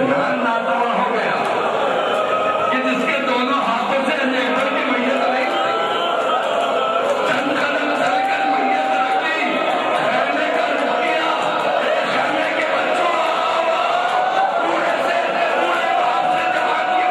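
A middle-aged man speaks with animation into a microphone, heard through loudspeakers in an echoing hall.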